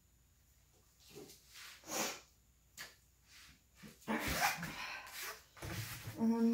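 Clothing rustles close by as a woman moves about.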